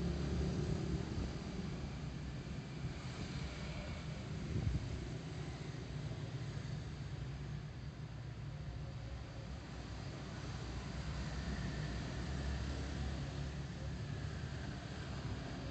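Wind rumbles against the rider outdoors.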